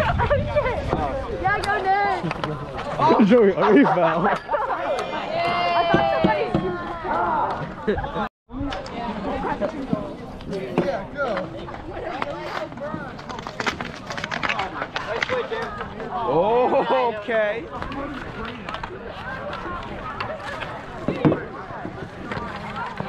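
Hockey sticks clack against each other and scrape on icy snow.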